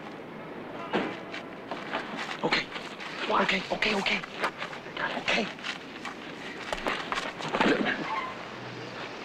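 Bodies and clothing thump and scuff in a scuffle.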